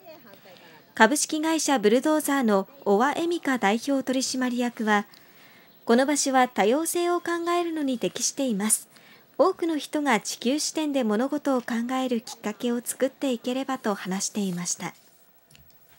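A woman speaks calmly and clearly close to a microphone.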